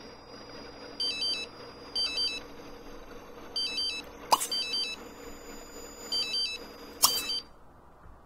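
Short electronic beeps sound as menu buttons are clicked.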